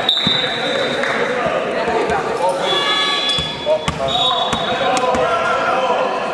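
Players and spectators call out in a large echoing hall.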